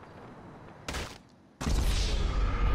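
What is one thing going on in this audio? A body hits the ground with a heavy thud.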